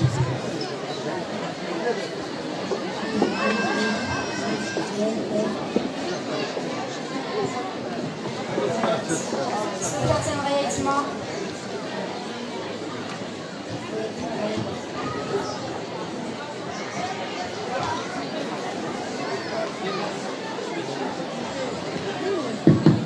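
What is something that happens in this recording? A woman speaks steadily through a microphone and loudspeakers in an echoing hall.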